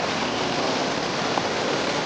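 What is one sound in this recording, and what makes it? Water splashes and sprays against the bank.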